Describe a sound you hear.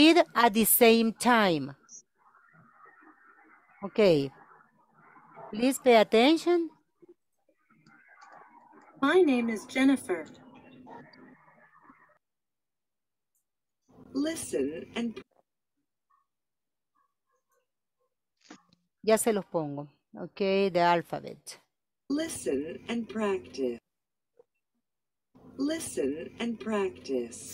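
A woman speaks clearly over an online call, pausing between phrases.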